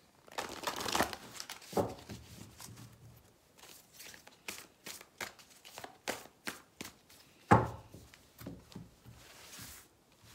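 Cards flick and rustle as they are shuffled by hand.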